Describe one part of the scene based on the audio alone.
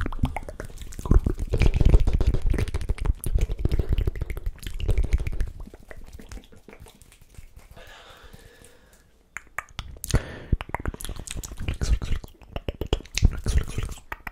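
A young man whispers softly into a microphone.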